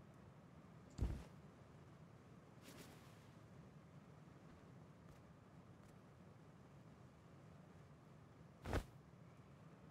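A heavy object is set down with a dull thud.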